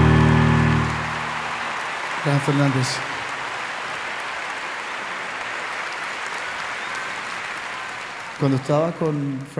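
A large audience applauds and cheers.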